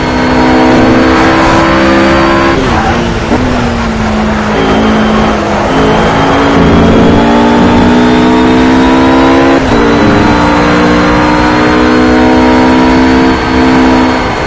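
A GT3 racing car engine roars at full throttle, rising in pitch and dropping at each upshift.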